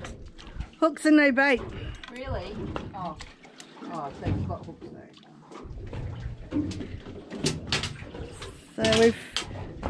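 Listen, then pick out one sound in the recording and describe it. A fishing reel clicks and whirs as line is reeled in.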